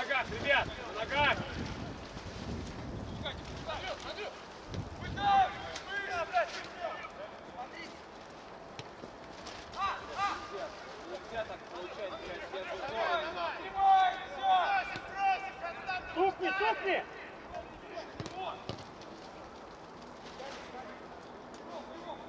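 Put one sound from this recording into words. Men shout to one another on an open outdoor pitch.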